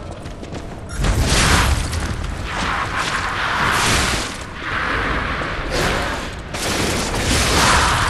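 Blades slash and clash in a fight.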